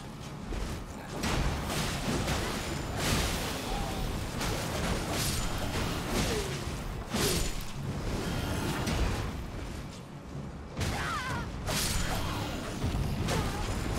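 Swords clash and slash repeatedly in a fight.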